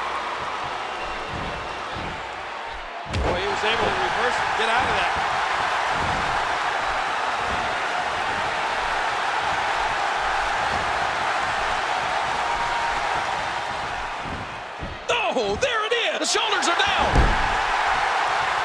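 A large crowd roars and cheers steadily in a big echoing arena.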